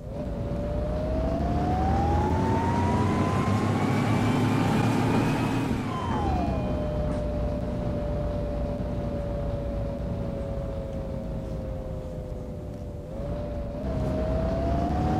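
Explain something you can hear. A bus engine whines, rising as it speeds up, then dropping and rising again.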